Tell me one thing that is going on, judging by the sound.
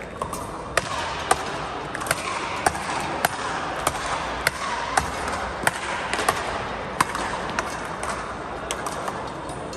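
Paddles strike a ball back and forth in a quick rally.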